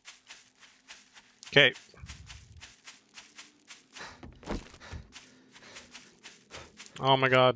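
Footsteps tread quickly and steadily over grass.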